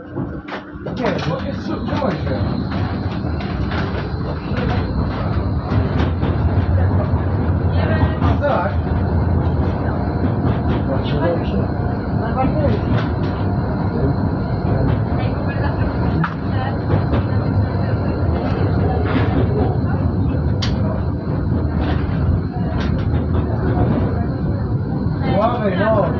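A tram rumbles along its rails, picking up speed.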